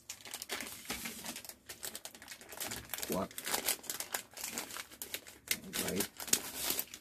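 A plastic sheet rustles and crinkles as it is shaken and handled close by.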